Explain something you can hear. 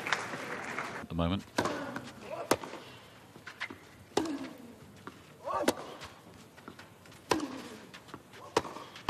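A tennis ball is struck sharply back and forth with racquets.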